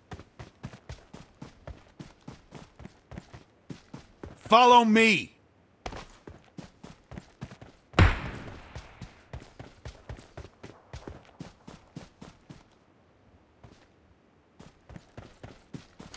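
Quick footsteps run over grass and dirt.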